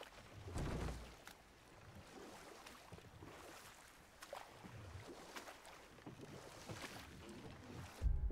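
Paddles splash and dip through water as a canoe glides along.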